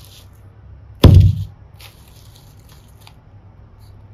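Plastic toys clatter as a hand picks them up.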